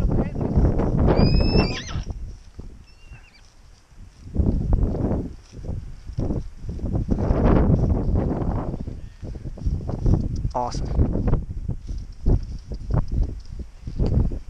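Horses tear and munch grass nearby.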